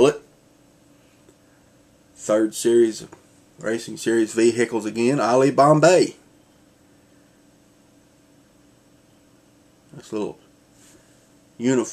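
A man speaks calmly and close by, in short bursts with pauses.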